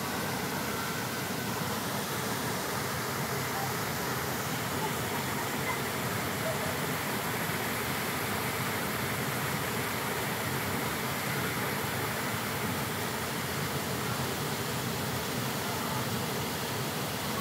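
Children splash and play in shallow water.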